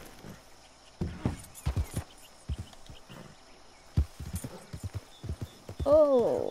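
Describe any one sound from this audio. A horse gallops with heavy thudding hoofbeats over grass.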